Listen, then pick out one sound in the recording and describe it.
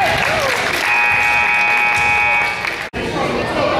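A referee's whistle blows shrilly.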